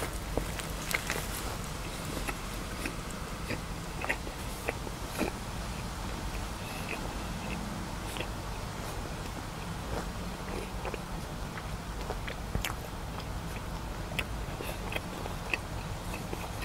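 A man chews food with wet mouth sounds close to a microphone.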